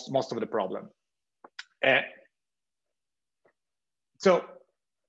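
A young man speaks calmly into a microphone in short phrases.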